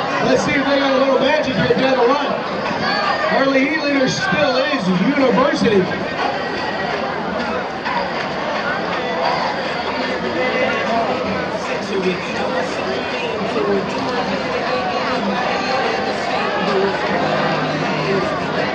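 Swimmers splash through water.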